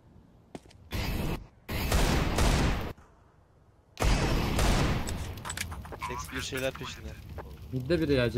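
A fire bursts into flame and roars.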